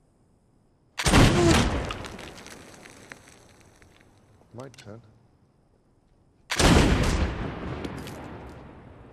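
Gunshots ring out loudly and echo.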